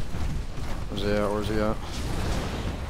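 A young man speaks briefly.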